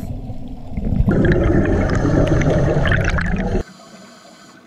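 Air bubbles from a diver's breathing gear gurgle loudly up close underwater.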